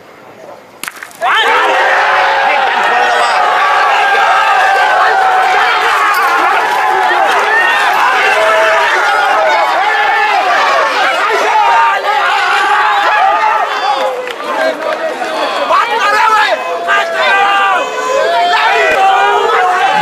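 Men shout with excitement nearby.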